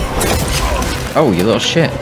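A chainsword grinds loudly.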